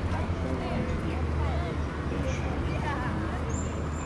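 Motorcycles ride past with engines humming.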